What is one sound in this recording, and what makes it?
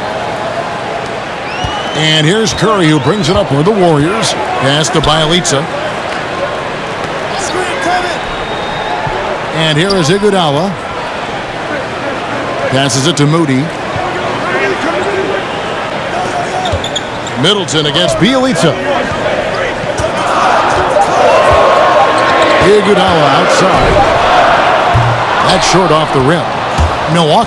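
A crowd murmurs and cheers steadily in a large echoing arena.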